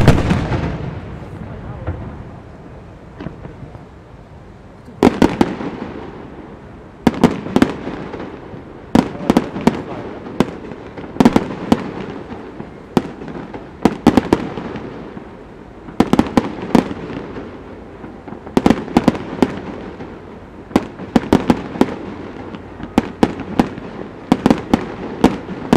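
Fireworks burst with sharp booms and crackles, echoing off into the distance.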